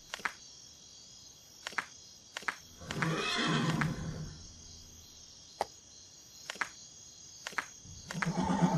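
Puzzle tiles slide into place with short clicks.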